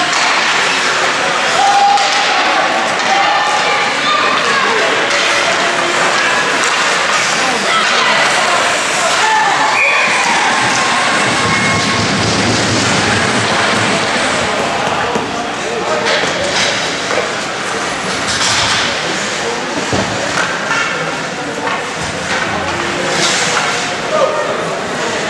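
Spectators chatter in a large echoing rink.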